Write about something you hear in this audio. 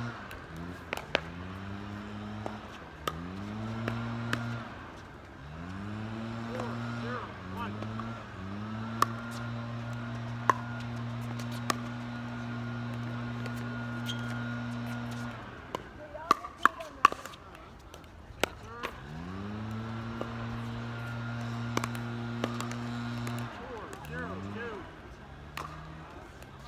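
Paddles sharply pop against a plastic ball, back and forth, outdoors.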